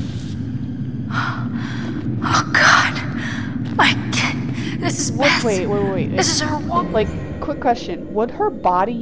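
A young woman answers calmly nearby.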